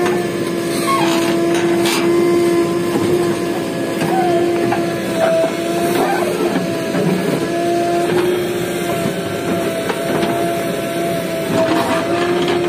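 A digger bucket scrapes and crunches into dry earth.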